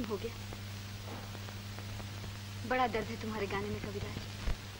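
A young woman speaks earnestly, close by.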